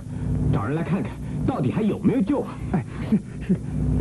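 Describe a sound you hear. A man speaks urgently and loudly.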